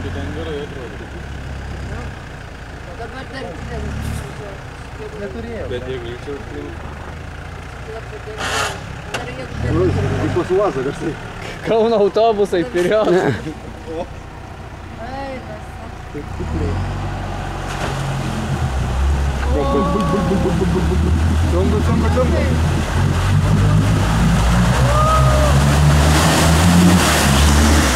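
An off-road vehicle's engine rumbles and revs as it drives through deep muddy water.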